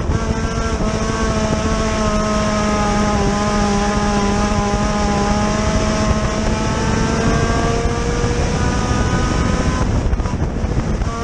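A race car engine roars loudly up close, its pitch rising and falling with the throttle.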